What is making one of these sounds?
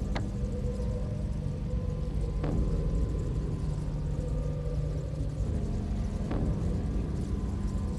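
Paper rustles softly as hands hold a map.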